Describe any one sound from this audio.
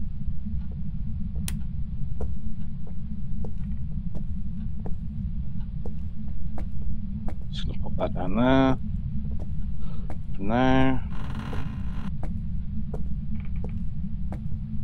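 Footsteps thud slowly on wooden floorboards.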